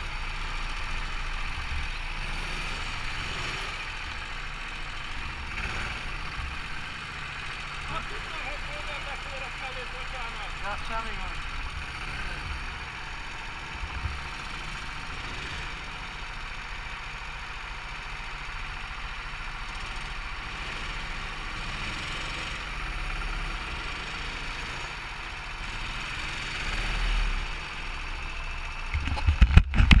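Go-kart engines buzz and rumble close by, outdoors.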